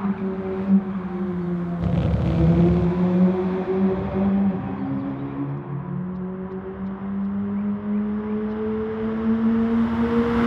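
A sports car engine revs loudly as the car speeds past.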